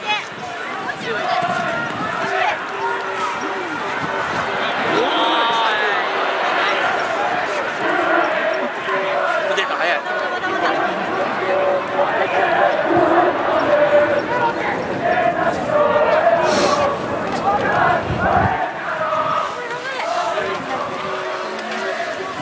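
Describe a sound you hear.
Young women players shout and call to each other across an open field.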